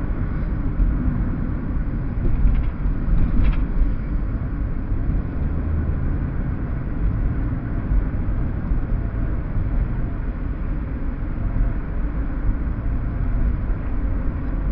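A car engine hums steadily with a low road rumble from inside the car.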